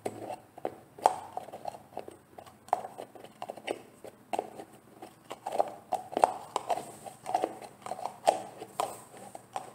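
Fingernails tap and scratch on a plastic jar close to the microphone.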